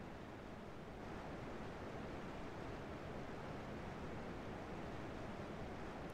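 Water rushes steadily in a cascade.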